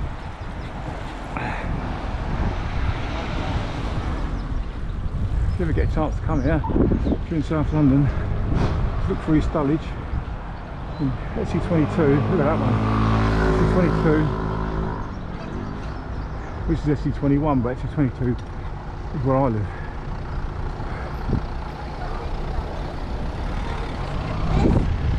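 A motorcycle engine hums and revs up and down close by.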